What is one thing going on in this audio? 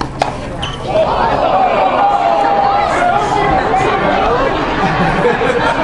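A crowd cheers and applauds outdoors.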